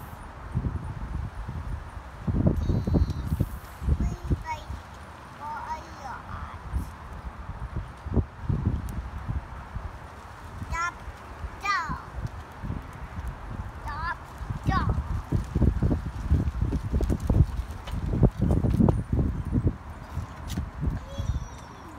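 A young child speaks softly close by.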